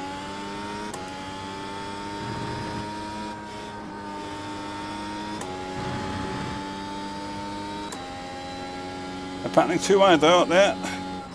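A racing car engine drones steadily, changing pitch abruptly with each gear shift.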